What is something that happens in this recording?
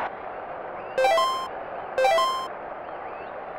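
A video game plays two bright electronic chimes.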